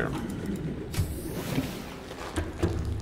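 A hatch hisses open.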